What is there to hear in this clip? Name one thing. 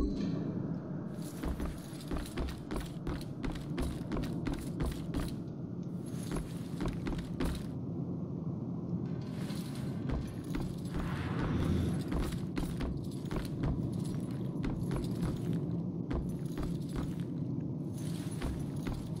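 Footsteps thud on creaky wooden floorboards.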